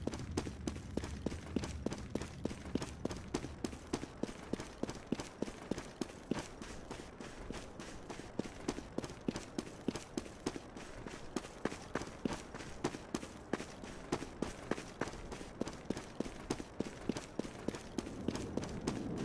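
Quick footsteps run steadily over hard ground.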